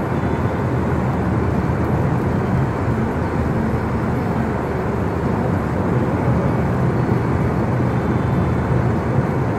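Tyres rumble on a snowy road, heard from inside a moving car.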